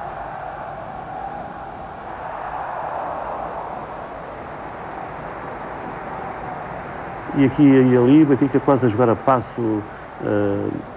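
A large crowd murmurs and roars steadily in a big open stadium.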